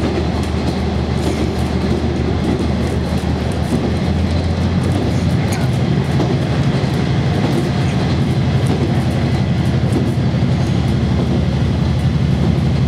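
A diesel railcar engine drones under way, heard from inside the carriage.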